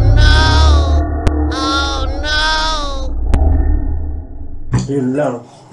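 A young girl laughs and talks excitedly close by.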